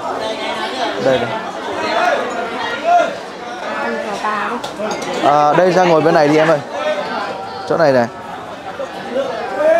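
A crowd of people chatter nearby.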